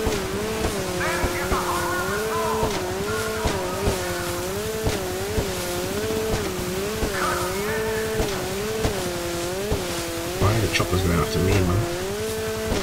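A man speaks now and then into a microphone.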